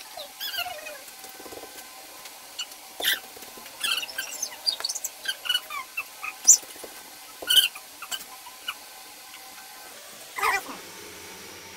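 Metal steamer lids and pots clink and clatter close by.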